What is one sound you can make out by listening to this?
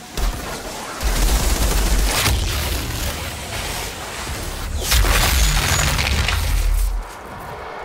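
Heavy gunfire booms in loud rumbling bursts.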